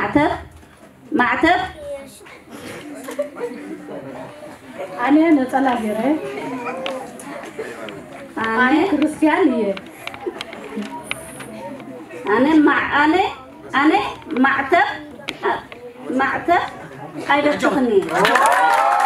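An elderly woman sings into a microphone.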